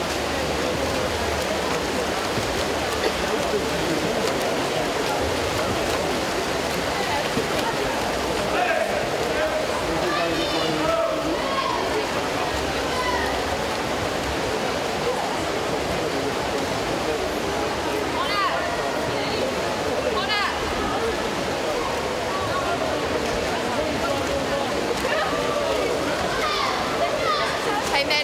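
Swimmers splash and churn through the water in an echoing indoor pool.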